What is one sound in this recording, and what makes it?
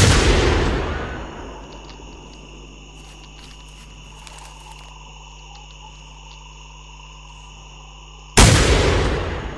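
A heavy gun fires with a loud boom that slowly rumbles away.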